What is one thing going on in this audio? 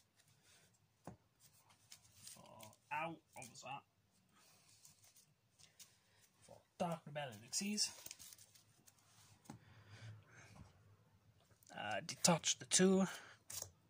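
Playing cards are placed and slid onto a soft mat.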